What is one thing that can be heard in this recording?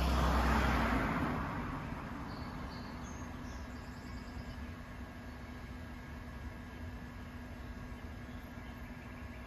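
A small delivery robot hums softly while it idles outdoors.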